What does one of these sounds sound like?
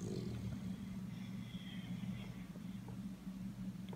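A dog snores softly.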